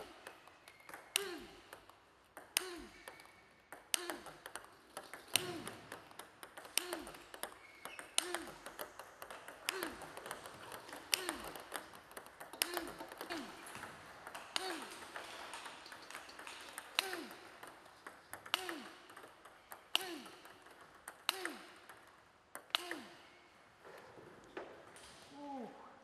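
A table tennis ball bounces on a table with a hollow ping.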